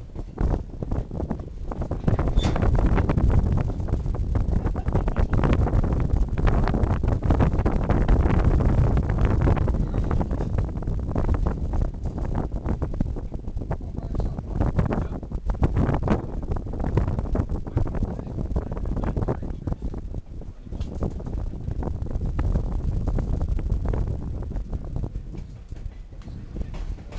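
A train rumbles and rattles steadily along the tracks.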